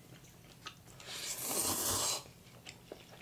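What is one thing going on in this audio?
A man slurps noodles loudly up close.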